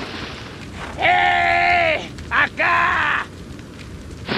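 A man shouts loudly in the distance.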